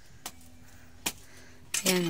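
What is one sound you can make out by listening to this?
A blade chops at wood.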